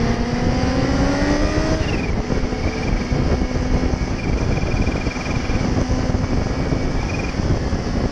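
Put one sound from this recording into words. A motorcycle engine hums and revs as it rides along.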